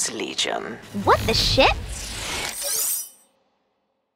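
A shimmering energy burst whooshes and sparkles.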